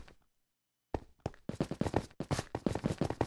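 Footsteps crunch quickly over stone and gravel.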